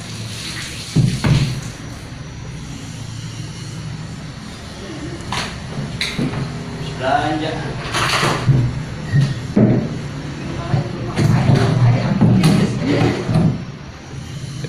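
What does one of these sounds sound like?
A wooden board knocks and bumps on a tiled floor.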